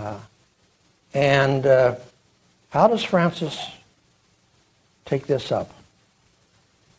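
An elderly man speaks calmly into a microphone in a large room, pausing between phrases.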